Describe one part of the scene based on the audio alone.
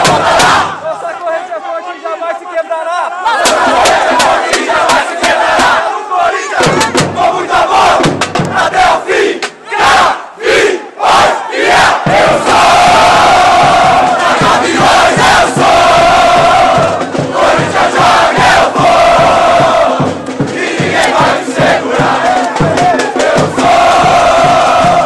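Fans in a crowd clap and shout.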